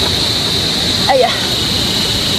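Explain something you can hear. A young woman speaks briefly and quietly close by.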